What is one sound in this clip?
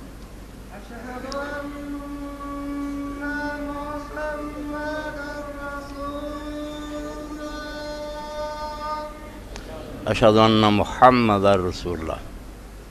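An elderly man recites in a long, drawn-out singing voice through a microphone.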